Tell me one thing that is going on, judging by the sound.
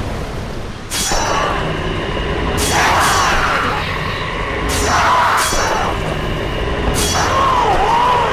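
Fists strike a body with heavy thumps.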